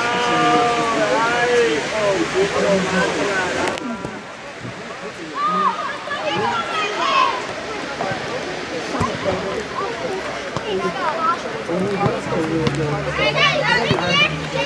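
Young boys shout and call out to each other outdoors.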